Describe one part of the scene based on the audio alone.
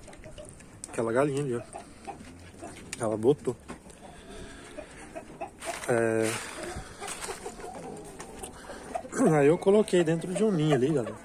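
Chickens cluck and squawk nearby.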